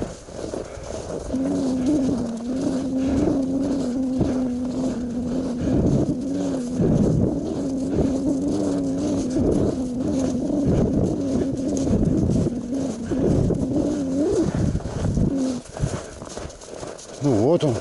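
Wind buffets loudly as the snowmobile moves.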